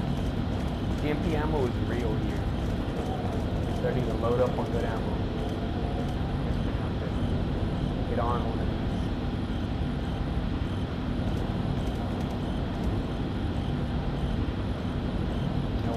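Footsteps tap on a metal walkway.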